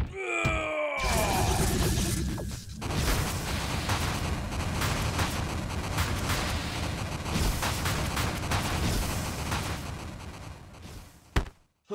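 A loud rumbling explosion roars and crackles.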